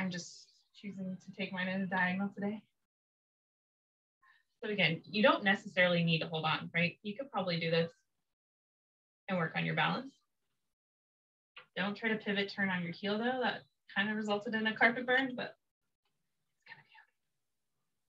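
A young woman speaks calmly and clearly, as if giving instructions, close by.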